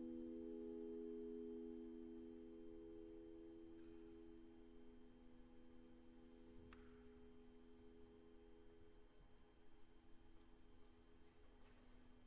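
A piano plays a soft, sustained chord that slowly fades.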